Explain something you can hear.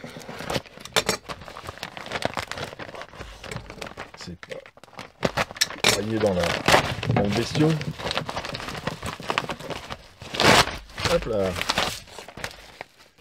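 Paper rustles and crinkles as it is handled close by.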